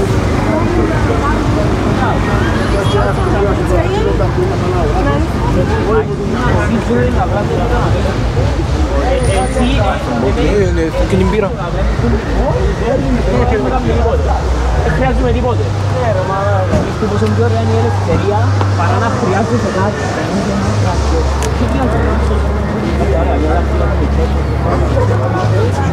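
Several young men talk casually close by, outdoors.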